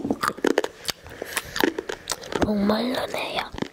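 A young girl sips from a cup close to a microphone.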